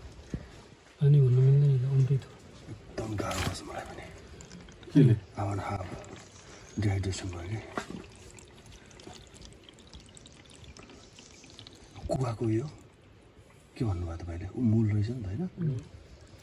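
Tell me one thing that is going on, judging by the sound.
Water trickles into a plastic bottle.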